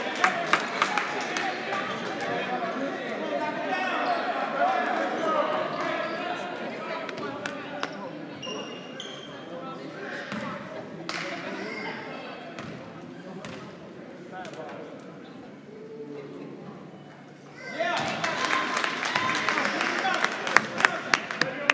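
A crowd chatters and cheers in an echoing gym.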